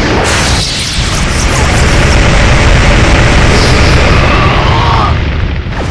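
Blades clash with sharp metallic hits.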